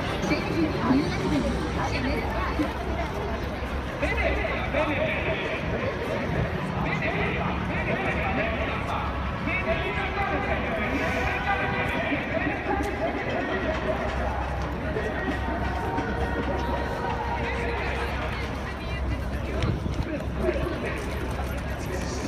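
Traffic rumbles past on a busy street.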